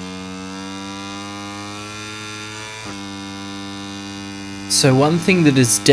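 A motorcycle engine whines at high revs, dropping in pitch as it shifts up a gear.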